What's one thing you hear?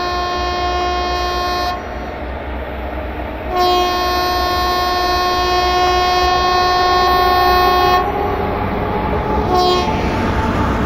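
A train horn blares loudly in long blasts.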